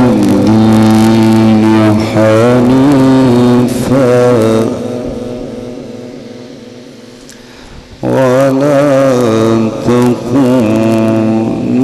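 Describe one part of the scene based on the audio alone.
A man sings a long, wavering chant through a loudspeaker, with pauses that echo away.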